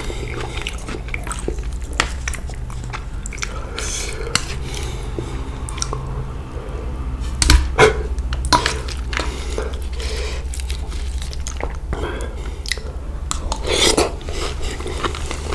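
Food squelches as noodles are mixed close up.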